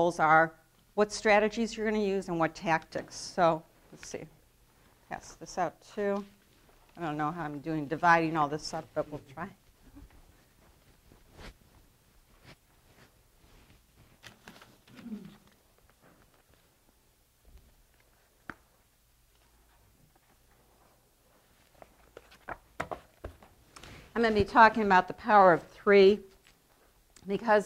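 A middle-aged woman speaks calmly, reading aloud into a microphone.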